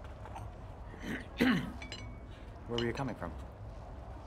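A cup clinks on a saucer.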